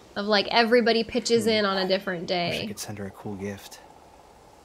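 A young woman talks calmly and close into a microphone.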